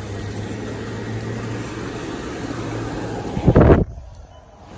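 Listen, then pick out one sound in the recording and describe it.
Traffic passes on a nearby street.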